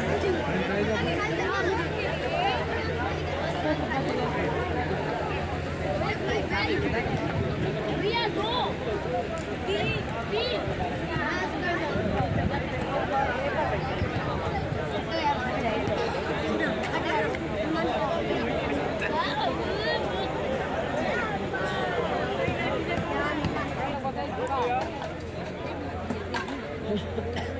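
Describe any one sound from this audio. A large crowd chatters loudly all around, outdoors.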